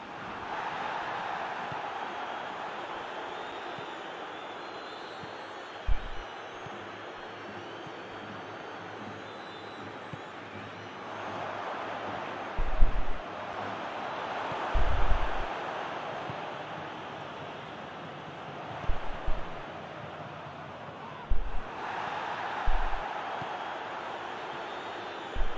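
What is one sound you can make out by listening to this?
A large stadium crowd murmurs and cheers, swelling now and then.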